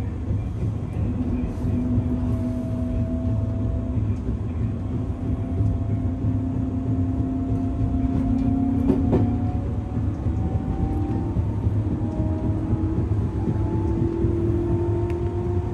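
A train's electric motor whines and slowly rises in pitch as it speeds up.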